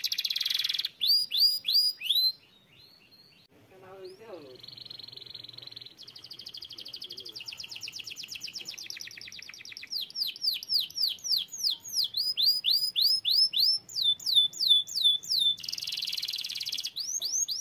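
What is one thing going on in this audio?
A canary sings loud trills and rapid chirps close by.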